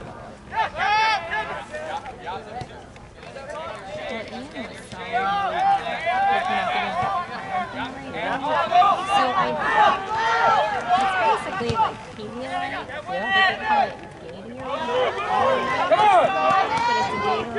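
Spectators on the sideline call out and cheer.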